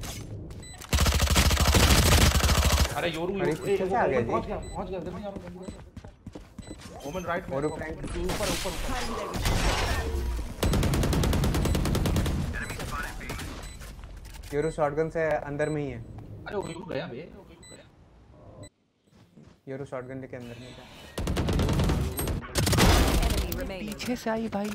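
An automatic rifle fires rapid bursts of gunshots in a video game.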